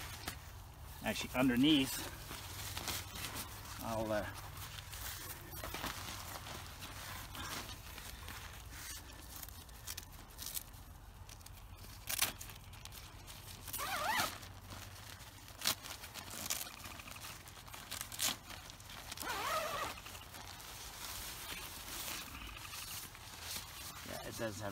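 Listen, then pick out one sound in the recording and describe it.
Tent fabric rustles and crinkles as it is handled.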